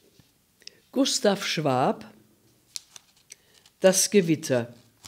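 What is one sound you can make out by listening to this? An older woman reads out calmly, close to a microphone.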